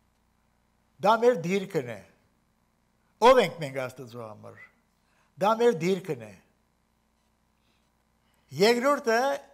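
An elderly man speaks in short phrases into a microphone, with pauses between them.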